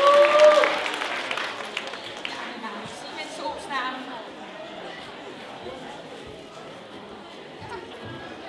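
A young woman talks through a microphone over a loudspeaker.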